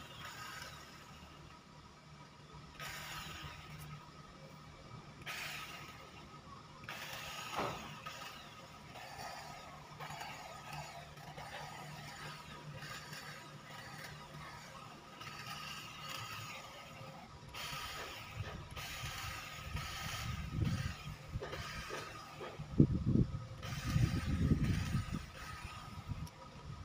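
Hand shears snip through leafy hedge trimmings.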